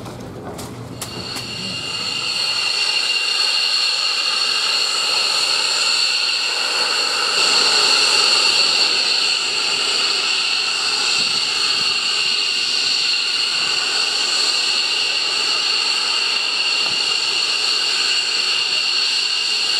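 A jet engine roars with a steady high whine.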